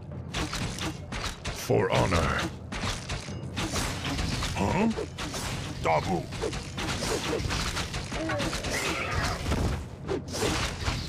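Swords and axes clash and clang in a battle.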